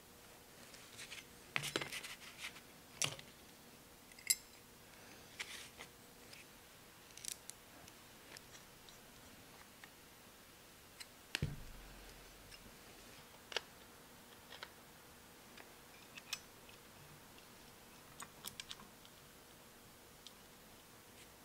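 Metal parts clink and knock.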